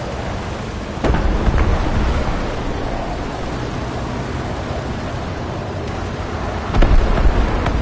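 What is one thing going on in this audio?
A tank's cannon fires with a heavy boom.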